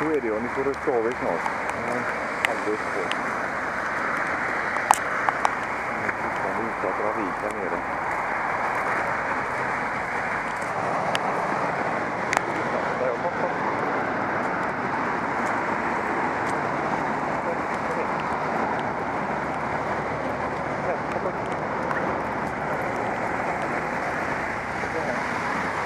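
Steady rain patters and hisses on wet ground outdoors.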